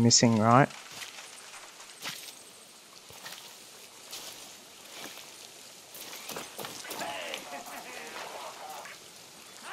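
Leaves and plant stems rustle as someone pushes through dense foliage.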